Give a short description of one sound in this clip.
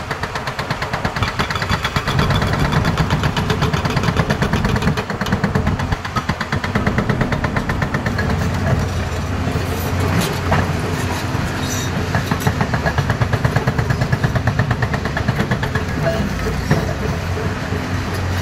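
Rocks and dirt clatter and tumble as an excavator bucket digs.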